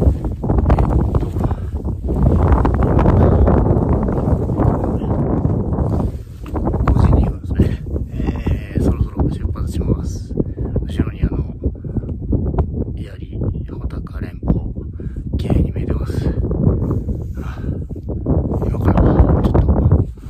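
A middle-aged man talks calmly and close up over the wind.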